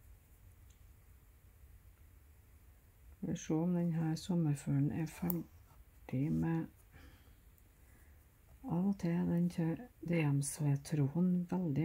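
Thread rustles softly as it is pulled through fabric.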